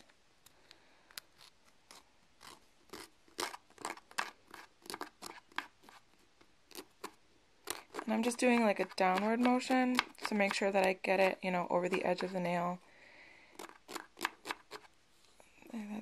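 A nail file rasps in quick, short strokes against a fingernail.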